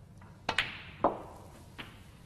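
Snooker balls knock together with a crisp click.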